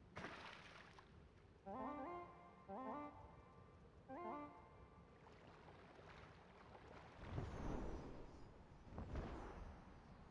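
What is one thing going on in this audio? Water splashes as a figure swims through waves.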